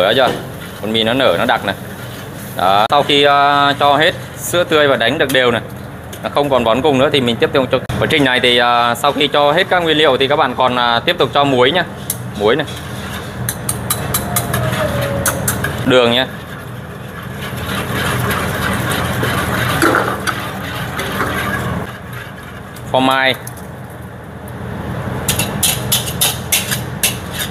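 A whisk scrapes and swishes through thick batter in a metal pan.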